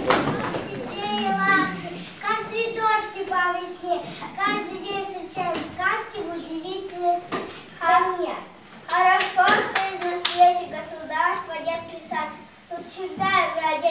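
A young child recites loudly and clearly.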